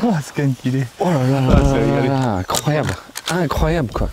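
A younger man laughs loudly close by.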